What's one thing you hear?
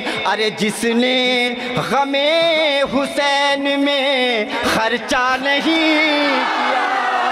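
A young man recites loudly and with feeling through a microphone and loudspeakers.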